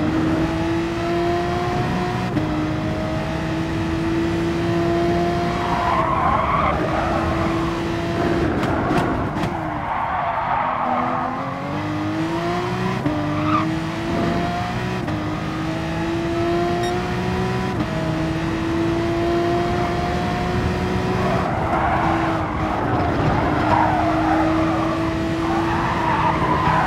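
A racing car engine roars at high revs, its pitch climbing through each gear and dropping at each shift and braking.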